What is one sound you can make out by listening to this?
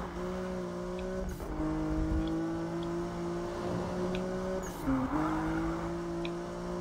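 Tyres screech on a wet road as a car drifts.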